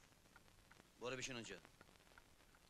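A man says a few words close by.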